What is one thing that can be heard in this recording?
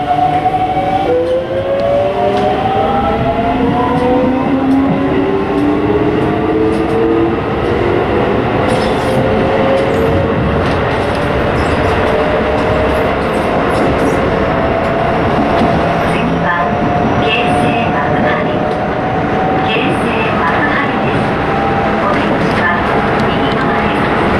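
A train's electric motor whines, rising steadily in pitch as it speeds up.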